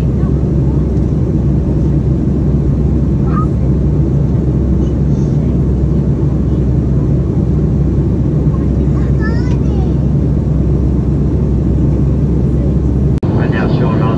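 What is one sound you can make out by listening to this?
A jet engine roars steadily in a low, constant rumble, heard from inside the cabin.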